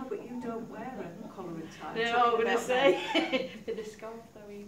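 A woman laughs close by.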